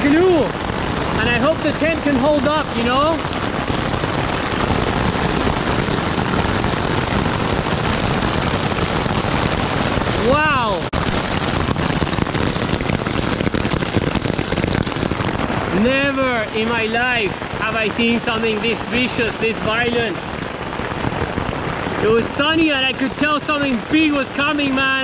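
Hail drums on a tent's fabric.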